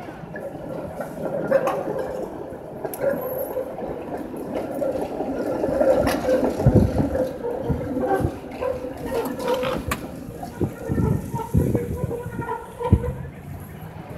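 Tram wheels clank and squeal on the rails.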